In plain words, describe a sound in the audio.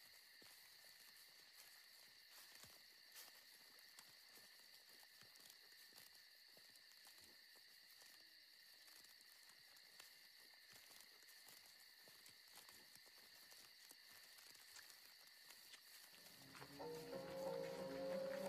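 Footsteps crunch softly on dry leaves and twigs.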